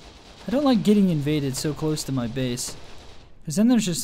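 Explosions boom nearby.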